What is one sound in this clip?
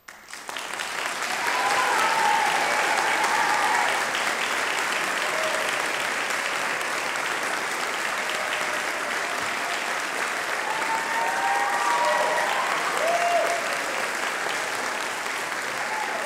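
Audience members cheer and whistle.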